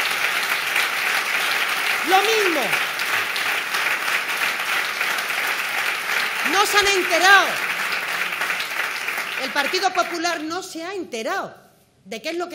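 A crowd applauds steadily in a large room.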